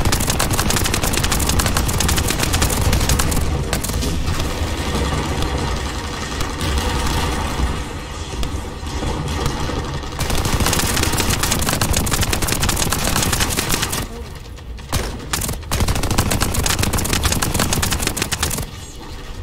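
Gunfire rattles rapidly in bursts.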